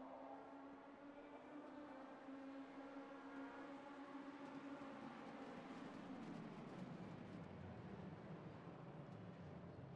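Racing car engines roar together at high revs.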